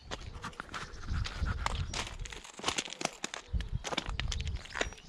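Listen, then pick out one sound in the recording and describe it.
Wind gusts roughly across open ground outdoors.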